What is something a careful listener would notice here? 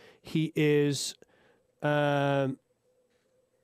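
A man speaks through a microphone over an online call.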